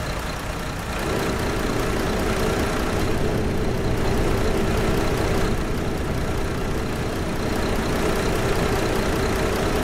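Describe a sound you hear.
A bus engine idles with a steady hum.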